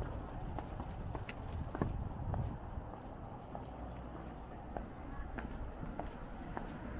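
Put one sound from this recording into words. Footsteps tap steadily on pavement close by.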